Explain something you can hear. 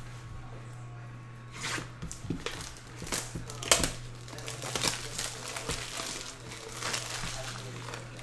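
Plastic wrap crinkles as a box is unwrapped.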